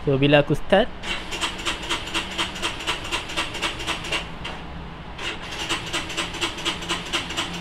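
A motorcycle engine idles with a steady, rhythmic ticking.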